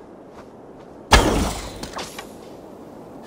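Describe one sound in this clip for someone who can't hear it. A bow is drawn with a creak and a sudden whoosh.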